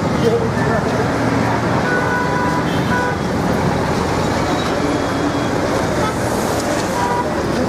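A crowd of men chatter and call out loudly outdoors.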